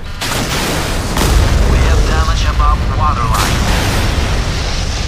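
Explosions rumble as shells hit a ship.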